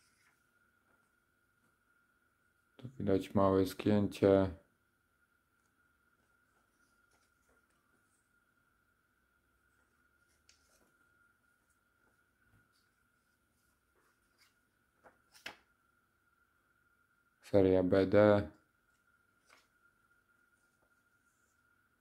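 Crisp paper banknotes rustle softly as they are handled.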